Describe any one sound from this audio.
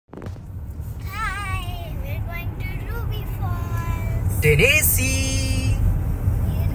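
A young girl shouts and laughs excitedly.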